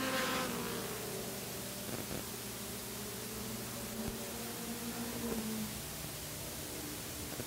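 A race car engine roars and revs.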